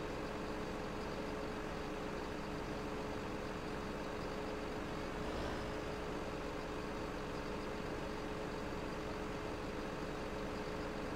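A hydraulic crane arm whines as it moves.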